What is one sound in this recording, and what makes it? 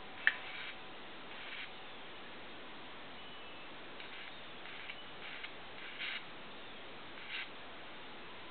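A small electric spark crackles and buzzes in short bursts.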